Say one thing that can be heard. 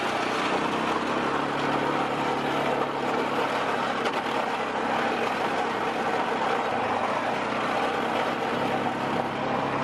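An all-terrain vehicle engine hums steadily while driving.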